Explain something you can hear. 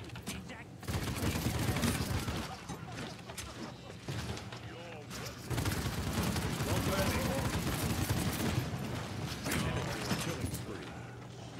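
Video game gunfire sounds.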